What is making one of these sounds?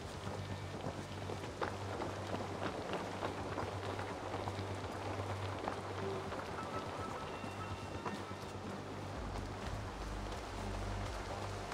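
Footsteps scrape and tap on roof tiles and stone.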